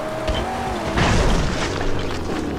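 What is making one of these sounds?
A car crashes and tumbles with a loud bang.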